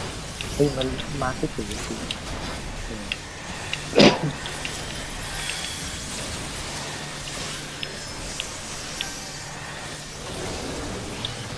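Magical spell effects chime and burst in quick succession.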